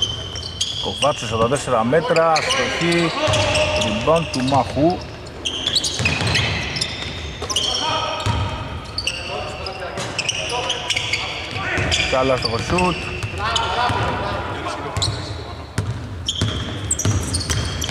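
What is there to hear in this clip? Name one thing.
A basketball bounces on a hardwood floor, echoing in a large, nearly empty arena.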